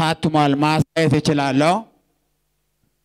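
A man speaks with emotion into a microphone, amplified in a large room.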